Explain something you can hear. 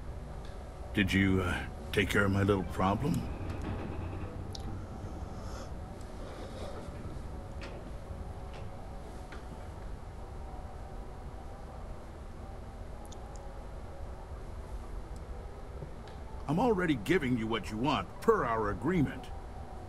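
A middle-aged man speaks calmly and clearly through a microphone.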